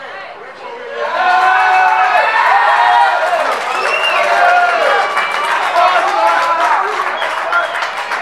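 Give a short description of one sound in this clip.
A crowd of spectators cheers and shouts excitedly outdoors.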